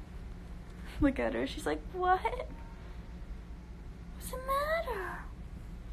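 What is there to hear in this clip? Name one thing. A small dog whines and yelps.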